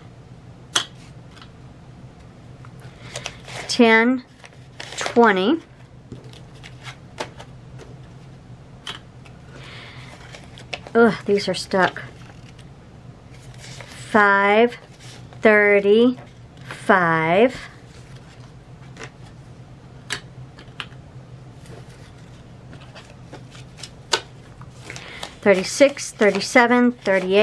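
Paper bills rustle and crinkle as they are counted by hand.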